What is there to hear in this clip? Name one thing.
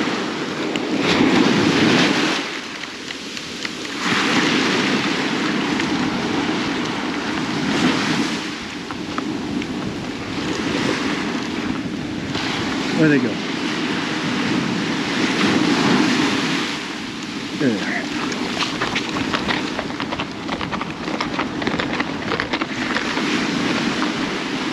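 Wind blows across the beach.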